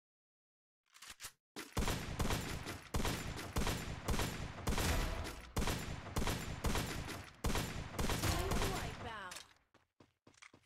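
Rapid gunshots fire in quick, loud bursts.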